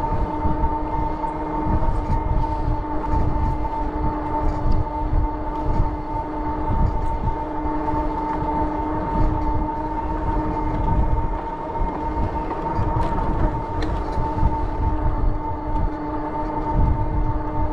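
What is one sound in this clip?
An electric motor whines steadily.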